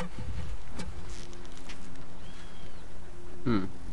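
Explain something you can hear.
A bowstring creaks as an arrow is drawn back.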